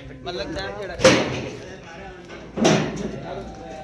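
A metal door bangs and rattles.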